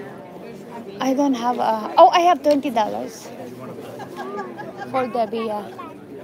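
A young girl talks loudly and excitedly close by.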